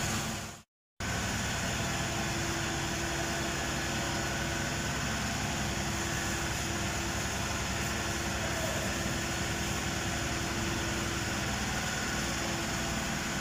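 A large fire roars steadily.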